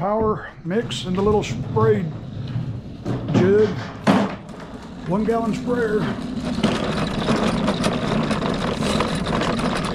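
A lawn mower's wheels roll over concrete.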